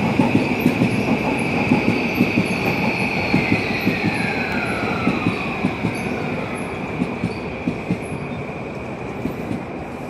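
Train brakes squeal with a high, slowly falling whine.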